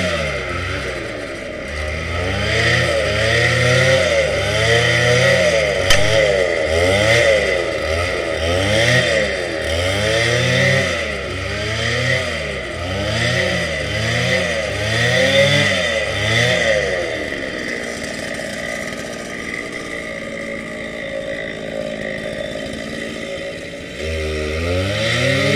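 A petrol string trimmer engine whines up and down in pitch, then settles to a low idle.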